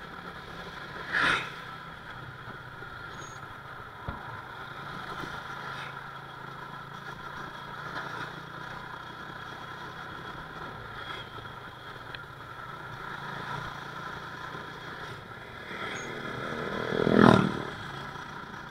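Other motorbikes pass by nearby.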